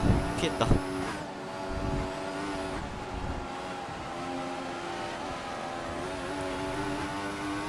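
A racing car engine whines at high revs, dropping in pitch on gear changes and braking, then rising again.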